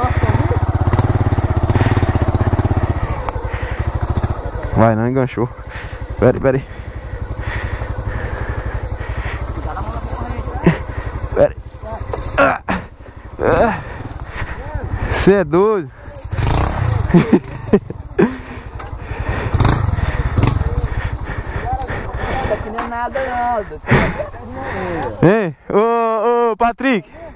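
A motorcycle engine idles and revs close by.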